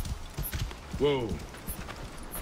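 A horse whinnies briefly.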